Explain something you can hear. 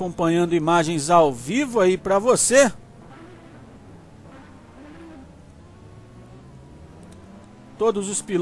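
Racing car engines drone faintly in the distance.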